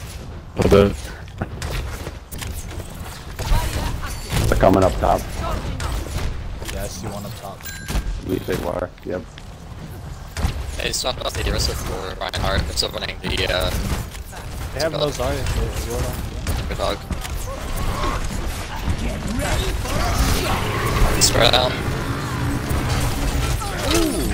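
A game weapon fires in rapid bursts.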